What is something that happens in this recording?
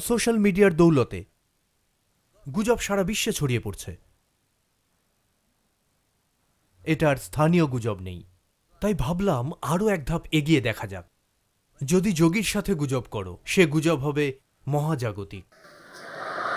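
An elderly man speaks calmly and slowly, in short phrases with pauses.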